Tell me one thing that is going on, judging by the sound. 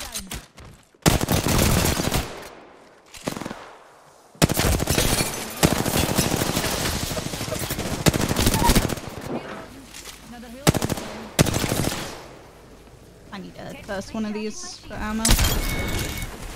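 Rapid gunfire bursts loudly in short volleys.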